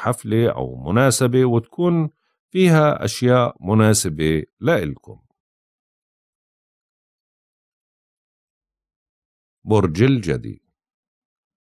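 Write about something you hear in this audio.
A middle-aged man speaks calmly and clearly into a close microphone, in short phrases with long pauses.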